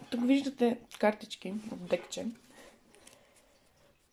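Playing cards slide and tap onto a table.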